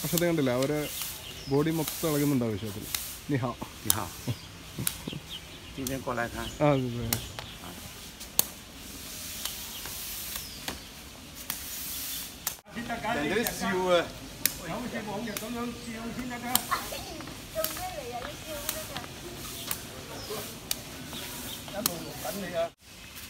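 Adults talk and call out nearby outdoors.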